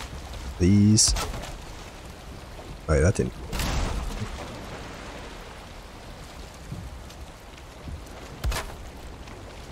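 Thatch roof pieces thud into place with a woody knock.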